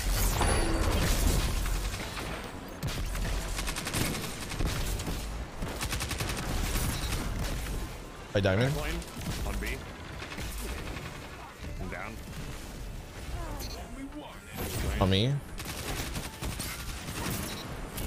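Gunfire from a video game cracks in quick bursts.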